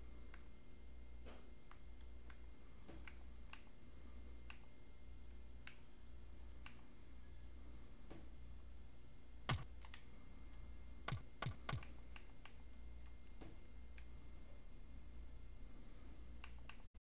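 Soft interface clicks sound as a game menu is browsed.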